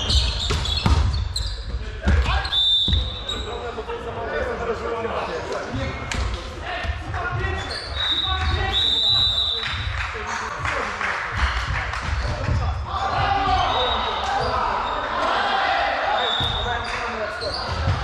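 A volleyball is hit with a slap.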